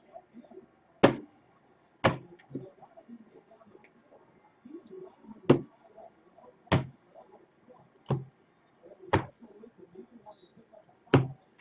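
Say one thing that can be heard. Cards tap and click sharply now and then.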